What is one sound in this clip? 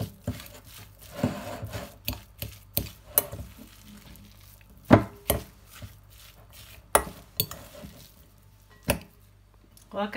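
A fork mixes minced meat and clinks against a glass bowl.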